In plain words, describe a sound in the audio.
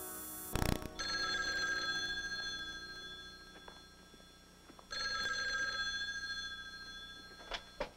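A telephone rings in short repeated bursts.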